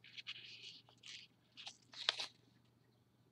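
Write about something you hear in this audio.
A paper banknote crinkles softly as it is folded.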